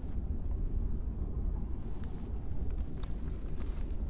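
Footsteps hurry over dry, dusty ground.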